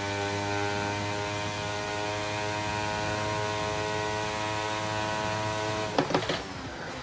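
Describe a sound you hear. A racing car engine screams at a steady high pitch at full throttle.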